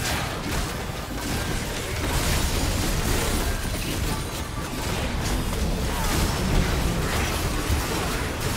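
Spell effects and weapon strikes crackle and clash in a game battle.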